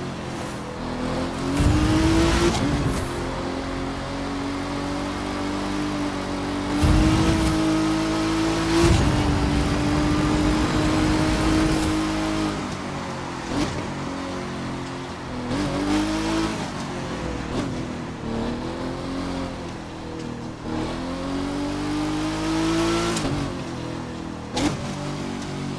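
A car engine roars and revs up and down through the gears.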